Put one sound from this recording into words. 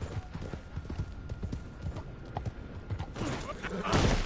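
Horse hooves thud on the ground at a gallop.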